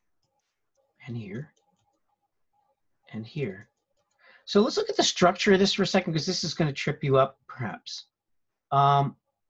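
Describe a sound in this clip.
A young woman speaks calmly into a microphone, in short bursts with pauses.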